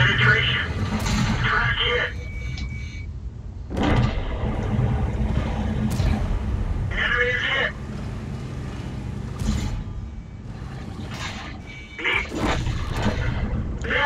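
A shell explodes with a heavy blast.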